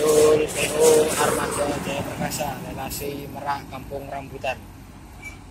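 A bus horn blares close by.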